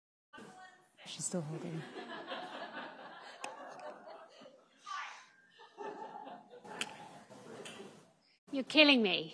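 A young woman laughs on a phone.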